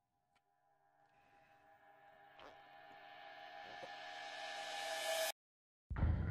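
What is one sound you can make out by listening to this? A high ringing tone swells louder and louder, then cuts off.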